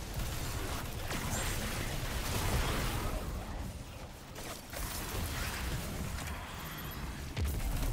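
Rapid gunfire rattles and booms.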